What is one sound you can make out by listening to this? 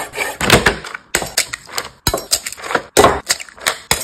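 An eggshell cracks against a knife blade.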